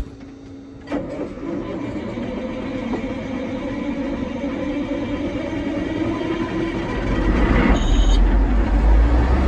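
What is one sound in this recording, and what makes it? A tractor engine rumbles steadily, growing louder.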